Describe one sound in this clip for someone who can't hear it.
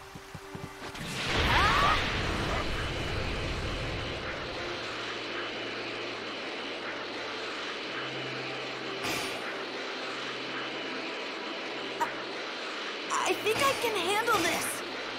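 A powerful rushing whoosh roars steadily as something flies at speed.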